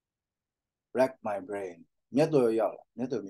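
A man reads aloud calmly through a microphone on an online call.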